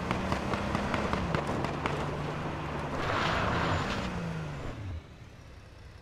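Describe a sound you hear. A car engine revs loudly, its pitch rising and falling, then cuts out.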